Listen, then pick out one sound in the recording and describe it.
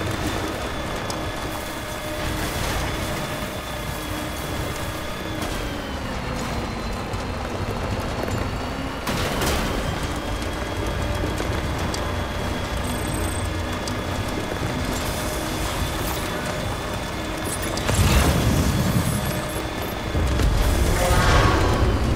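Tyres crunch over rocky ground.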